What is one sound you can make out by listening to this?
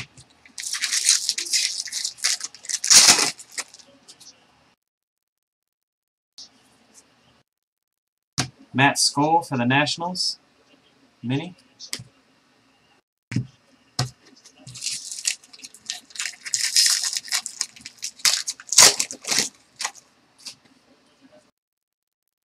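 A foil wrapper crinkles and tears open.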